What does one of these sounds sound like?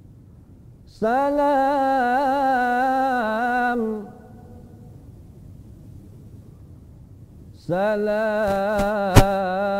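A man chants a long, sustained recitation into a microphone.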